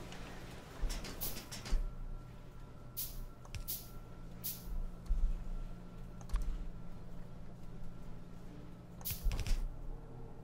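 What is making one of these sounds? Short clicks sound as building pieces snap into place.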